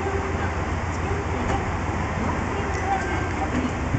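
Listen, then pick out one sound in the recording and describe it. Train doors slide open with a hiss.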